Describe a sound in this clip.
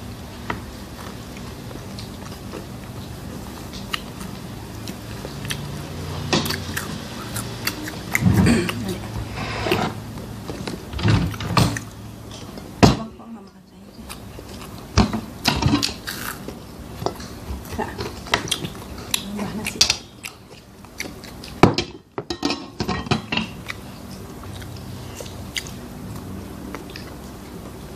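A girl bites and chews crunchy fried shrimp close to the microphone.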